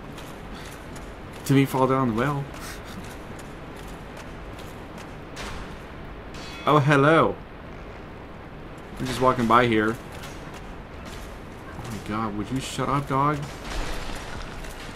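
Heavy armoured footsteps clank on a stone floor.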